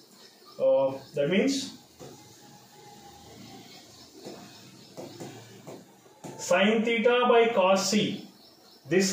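A man speaks clearly and calmly, as if teaching, close to a microphone.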